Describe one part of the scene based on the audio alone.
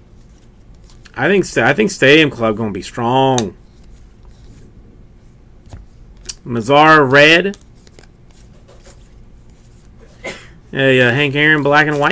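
Trading cards slide and rustle against each other in a hand.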